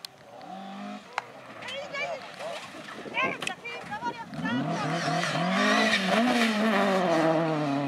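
A rally car engine roars and revs hard as the car skids past.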